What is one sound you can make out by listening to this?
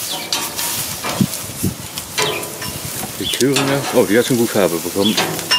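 Sausages sizzle steadily on a hot grill.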